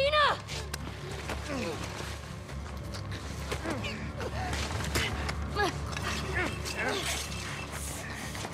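A woman gasps and speaks in a strained voice.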